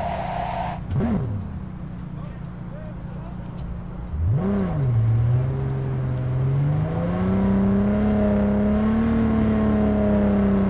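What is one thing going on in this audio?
A car engine revs and roars as it speeds along a road.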